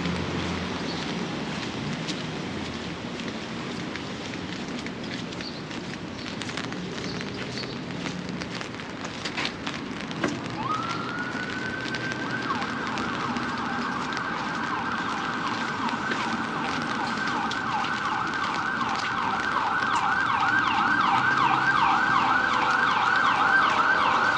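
Traffic hums along a city street outdoors.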